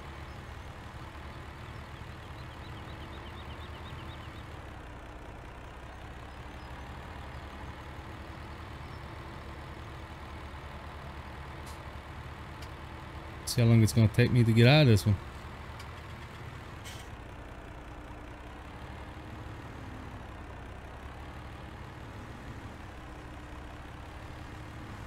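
A truck engine hums steadily at low speed.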